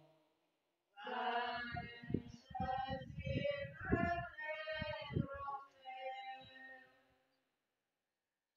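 A man sings a prayer through a loudspeaker outdoors.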